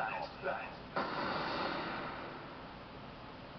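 A game's loud whooshing sound effect bursts out and slowly fades.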